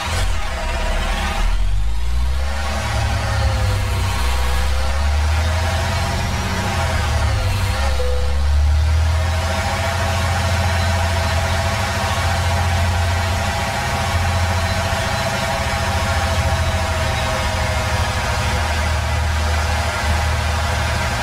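A truck engine rumbles steadily while the truck drives slowly.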